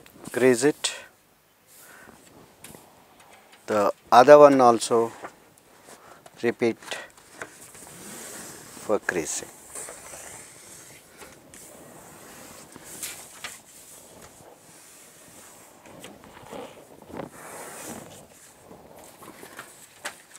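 Stiff paper rustles and slides on a table.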